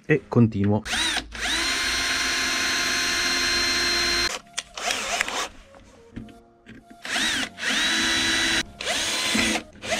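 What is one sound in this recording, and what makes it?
A cordless drill whirs steadily in short runs.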